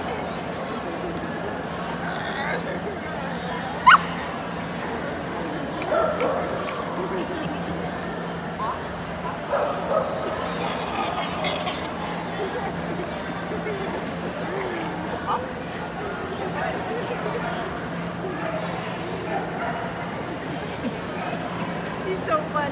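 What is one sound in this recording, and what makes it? A woman talks playfully to a dog close by.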